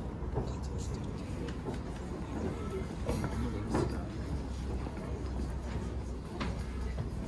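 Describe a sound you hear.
An audience murmurs quietly.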